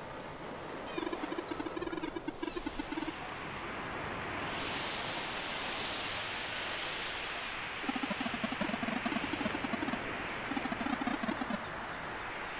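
Rapid soft beeps chatter in quick bursts.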